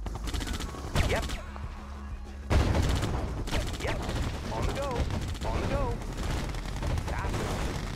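Explosions boom and crash.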